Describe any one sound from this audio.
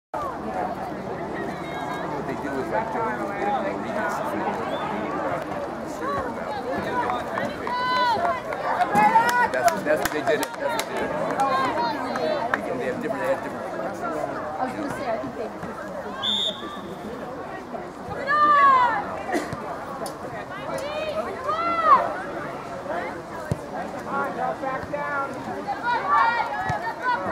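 A crowd of spectators chatters at a distance outdoors.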